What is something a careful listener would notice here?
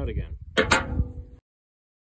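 A metal file rasps against a steel shaft.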